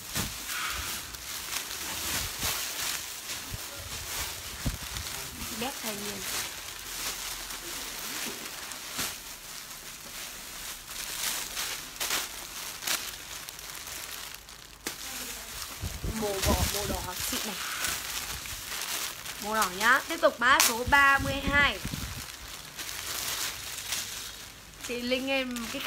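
Plastic wrapping crinkles and rustles close by.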